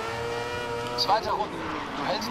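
Other racing cars roar past nearby.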